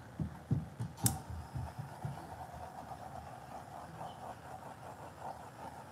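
A heat gun blows with a steady whir.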